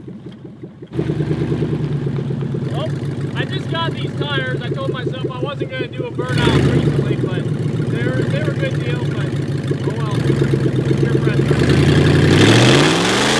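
A truck engine idles with a deep rumble.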